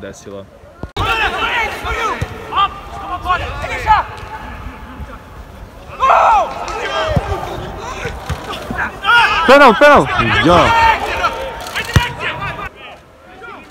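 Football players shout to each other in an echoing, empty stadium.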